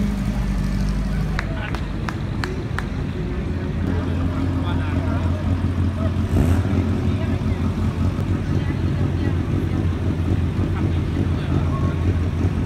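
Vintage car engines rumble past at low speed.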